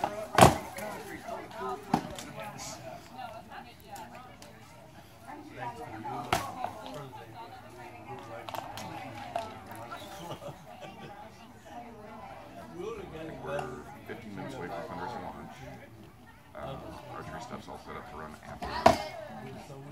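A crowd of people chatters faintly outdoors.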